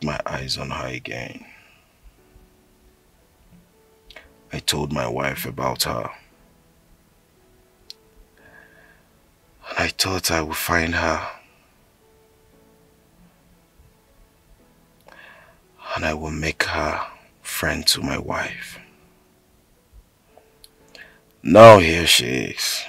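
A man speaks close by in short, tense bursts with pauses between them.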